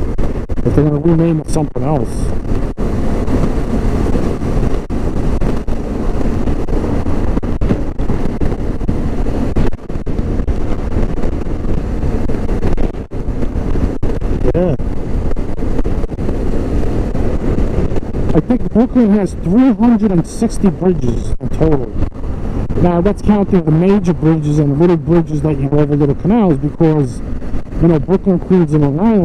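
Wind roars loudly past at speed.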